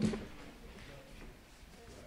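A walking frame knocks softly on the floor.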